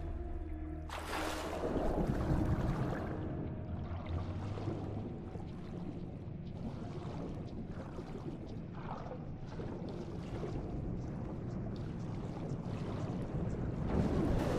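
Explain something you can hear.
Muffled underwater bubbling and rumbling goes on steadily.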